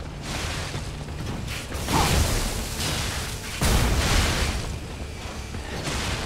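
Heavy blades clash and thud in combat.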